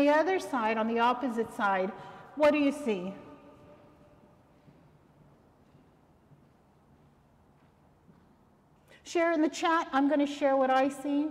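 A middle-aged woman speaks calmly through a microphone in an echoing room.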